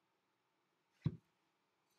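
A clay pot knocks down onto a table with a dull thud.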